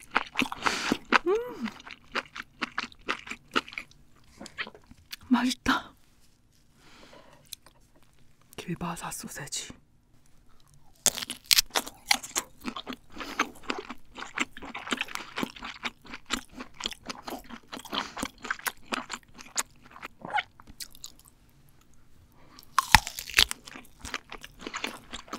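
A young woman chews food wetly and loudly, close to a microphone.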